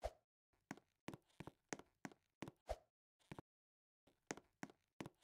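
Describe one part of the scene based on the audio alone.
Short, sharp game sound effects click and pop in quick bursts.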